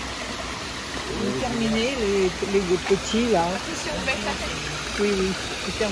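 A small waterfall splashes and trickles over rocks.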